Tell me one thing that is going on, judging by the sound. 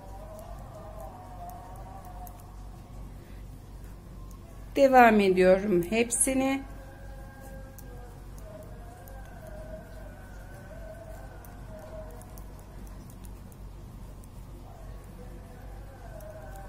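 Knitting needles click and scrape softly against each other.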